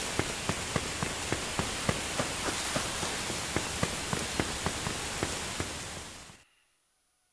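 Rain hisses steadily outdoors.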